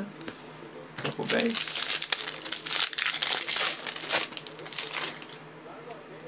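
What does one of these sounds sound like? Plastic wrapping crinkles as it is torn open.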